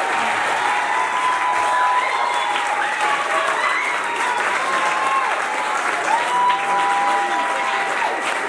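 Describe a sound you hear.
A group of young children sing together.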